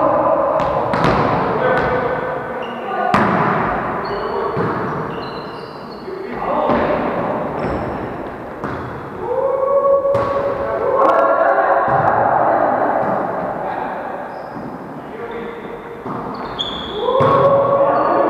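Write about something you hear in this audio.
A volleyball is struck hard again and again, echoing around a large hall.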